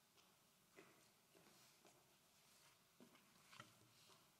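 Footsteps tap on a wooden floor.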